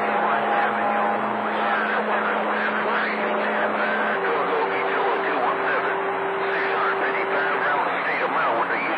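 A radio receiver hisses with loud static.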